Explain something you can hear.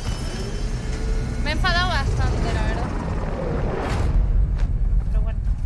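A helicopter's rotor thumps with a deep, loud roar.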